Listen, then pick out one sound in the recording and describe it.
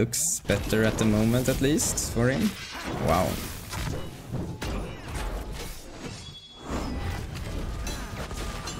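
Punches and crackling magic blasts hit in quick bursts during a fight.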